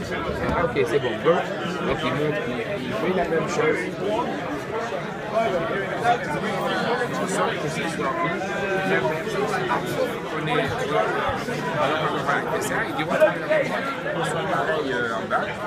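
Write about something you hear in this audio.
Several men talk over one another close by.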